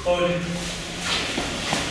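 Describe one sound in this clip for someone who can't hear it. Martial arts uniforms swish sharply as several people kick.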